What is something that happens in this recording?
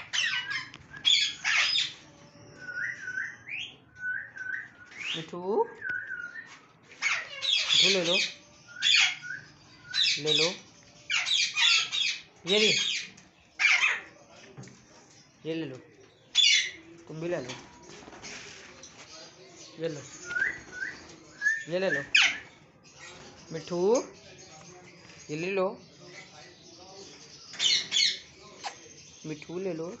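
Parakeets screech loudly in sharp, repeated bursts close by.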